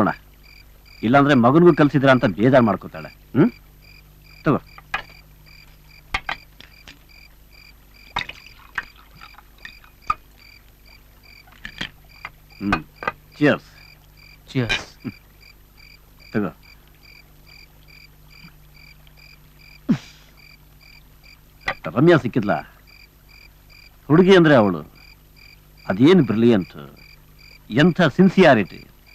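A middle-aged man speaks calmly and earnestly, close by.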